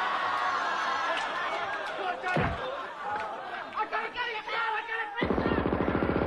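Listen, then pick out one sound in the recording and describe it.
A woman shrieks and wails.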